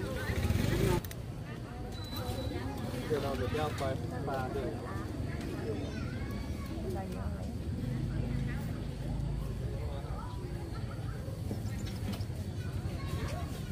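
A middle-aged woman talks close by.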